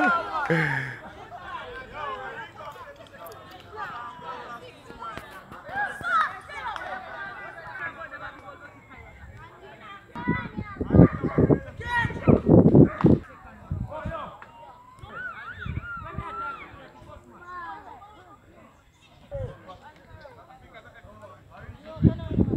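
Several young men talk and call out to each other outdoors.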